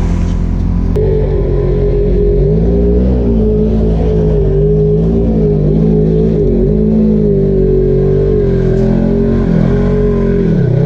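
An off-road vehicle's engine revs and labours as it climbs.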